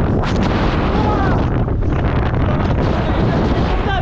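A young man talks loudly over the wind, close by.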